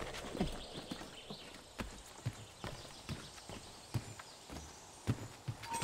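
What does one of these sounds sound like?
Footsteps patter on wooden shingles.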